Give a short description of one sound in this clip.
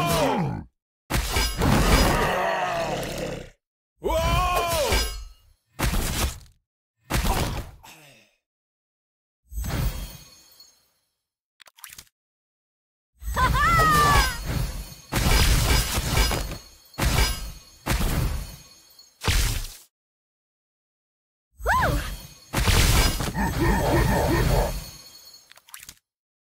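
Game battle effects whoosh, clash and burst in short loud bursts.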